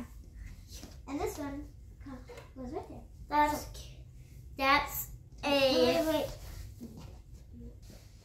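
Small plastic toys click on a wooden floor.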